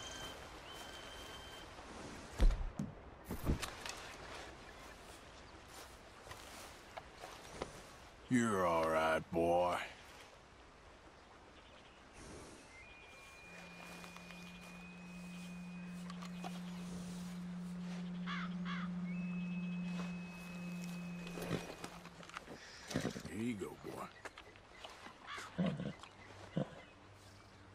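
A horse snorts softly.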